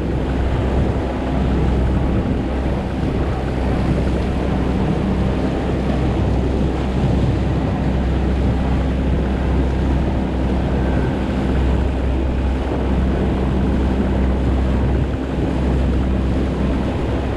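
An outboard motor drones steadily as a small boat speeds along.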